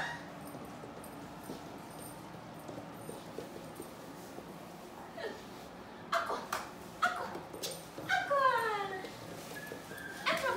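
Dogs' claws click and patter on a wooden floor.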